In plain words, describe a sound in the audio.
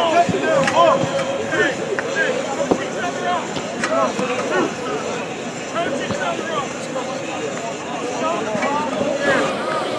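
Men talk and call out across an open field.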